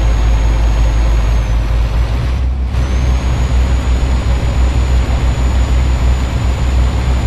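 A truck engine rumbles low and steady while driving.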